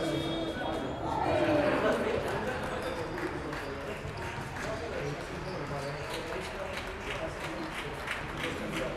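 Several men talk at a distance in a large echoing hall.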